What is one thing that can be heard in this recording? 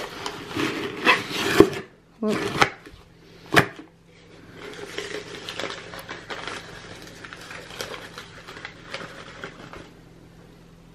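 Packing paper crinkles as it is pulled out of a box.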